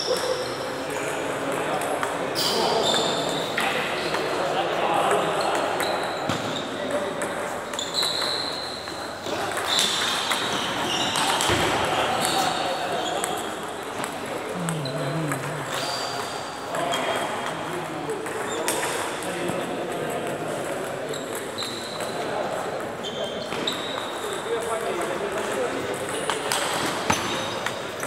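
Ping pong balls click on tables and paddles in a large echoing hall.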